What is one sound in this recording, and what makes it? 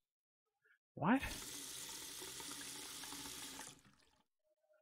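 Water runs from a tap into a pot.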